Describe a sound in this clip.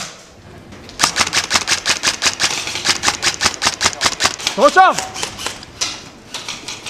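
A rifle fires in rapid bursts of sharp cracks.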